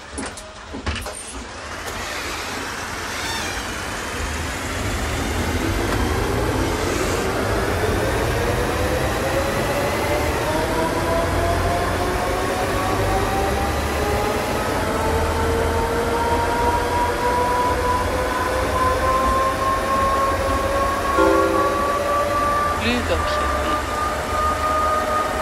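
Tyres rumble low on the road.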